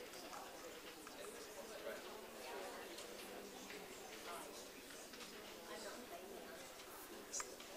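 A man speaks steadily to an audience, a little way off.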